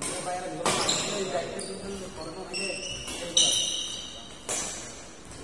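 Rackets smack a shuttlecock back and forth in an echoing hall.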